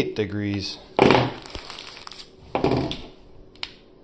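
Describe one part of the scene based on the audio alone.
A plastic gel pack crinkles as a hand handles it.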